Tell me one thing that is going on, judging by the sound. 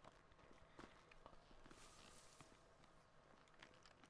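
Footsteps crunch softly on dirt.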